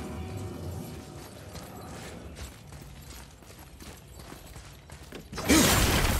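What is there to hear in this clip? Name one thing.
Heavy footsteps crunch on stone.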